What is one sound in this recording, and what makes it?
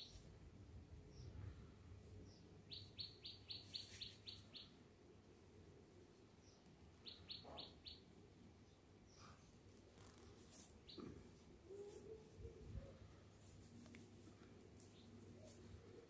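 Rough rope rustles and scrapes as hands twist and knot it.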